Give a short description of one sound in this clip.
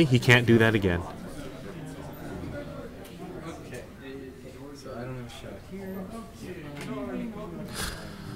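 A second man talks quietly nearby.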